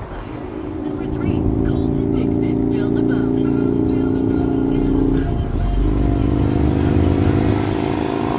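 A car engine drones as the car pulls away from a stop.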